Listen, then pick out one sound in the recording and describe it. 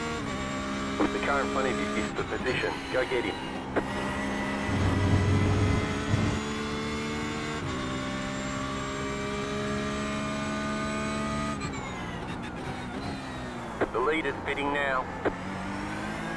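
Tyres squeal as a car brakes and turns.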